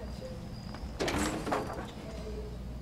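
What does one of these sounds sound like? A heavy door scrapes open.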